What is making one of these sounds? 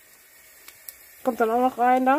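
Garlic sizzles softly in a hot frying pan.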